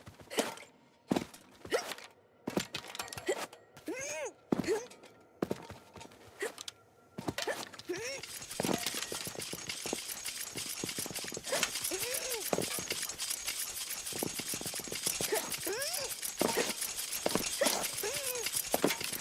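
A small character in a game hops along with short bouncy sound effects.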